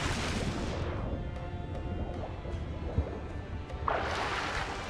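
Water sounds muffled and dull from under the surface.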